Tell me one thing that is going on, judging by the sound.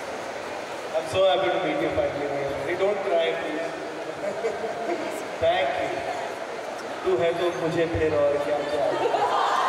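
A man speaks with animation through a microphone over loudspeakers.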